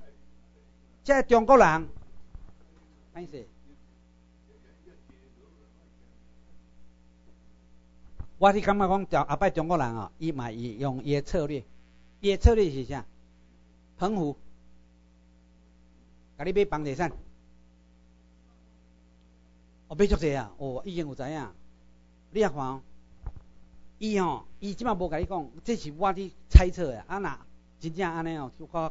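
A middle-aged man speaks into a microphone over a loudspeaker, in short bursts with pauses.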